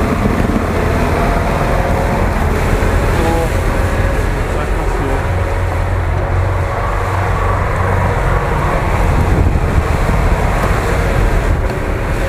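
A truck's diesel engine roars loudly under heavy strain.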